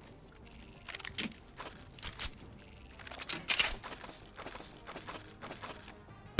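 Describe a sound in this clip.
Metallic clicks and clacks sound as a weapon is picked up and loaded in a video game.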